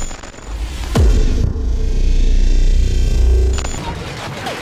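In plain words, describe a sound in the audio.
A deep whoosh swells into a low boom.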